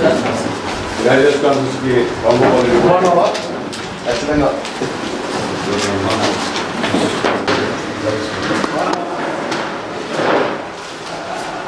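Several men talk and greet each other cheerfully nearby.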